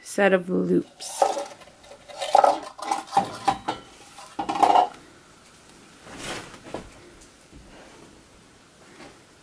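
Sheer ribbon rustles and crinkles as it is handled.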